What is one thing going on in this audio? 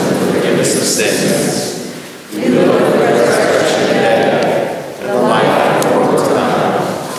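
A congregation sings together in a large, echoing hall.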